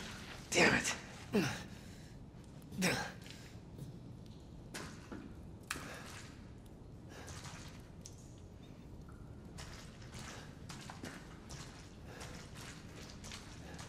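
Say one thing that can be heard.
Footsteps crunch slowly on gritty ground.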